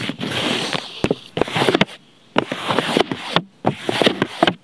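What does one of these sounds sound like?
Fingertips tap on paper close to a microphone.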